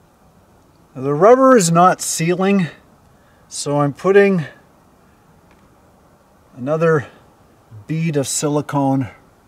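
An older man speaks calmly and close by, in short phrases.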